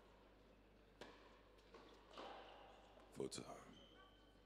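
A racket hits a tennis ball.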